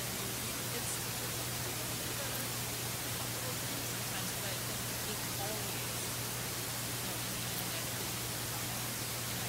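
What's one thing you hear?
A woman speaks calmly into a microphone, heard faintly through loudspeakers in a large room.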